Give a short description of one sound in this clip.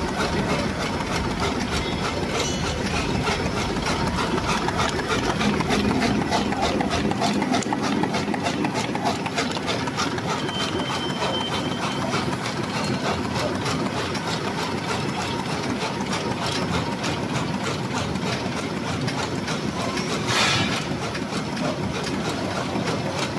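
A machine hums and clatters steadily with rapid rhythmic clicking.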